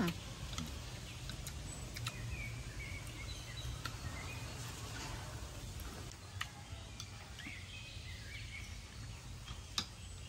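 Chopsticks click against a bowl and plate.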